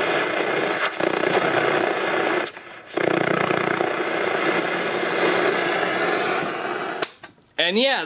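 A television hisses loudly with static.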